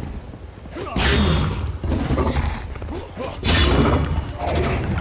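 A heavy blade swings through the air and strikes with a hit.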